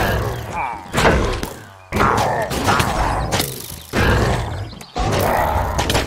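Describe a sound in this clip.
Sword blows strike monsters in a video game.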